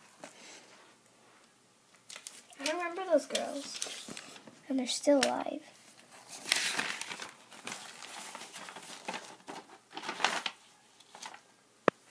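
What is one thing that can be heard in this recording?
Paper pages rustle as a notebook's pages are turned.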